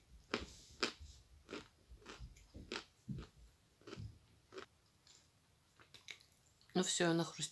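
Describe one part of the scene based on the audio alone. Soft chewing and mouth clicks come close up.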